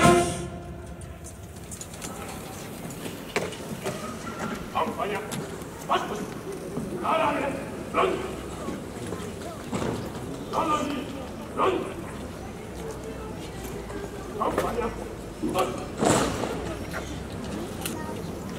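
A man speaks through a loudspeaker.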